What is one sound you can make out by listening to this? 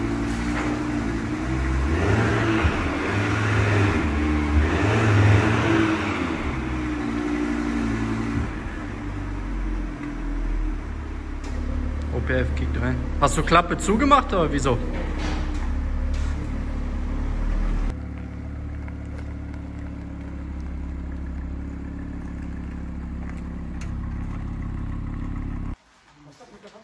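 A sports car engine idles loudly and revs in an echoing room.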